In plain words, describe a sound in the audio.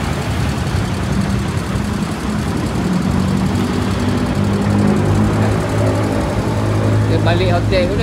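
A small motor engine idles with a steady rumble.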